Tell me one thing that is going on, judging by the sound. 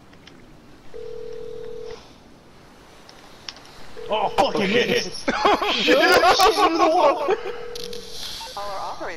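A phone call rings with a steady beeping tone.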